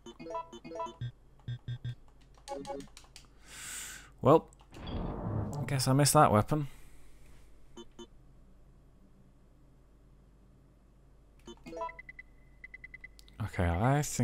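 Short electronic menu beeps blip in quick succession.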